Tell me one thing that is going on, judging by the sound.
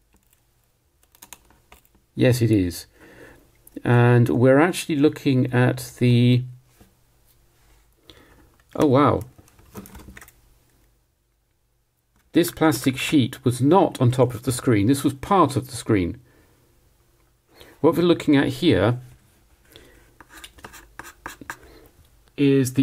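A metal tool scrapes and taps on hard plastic.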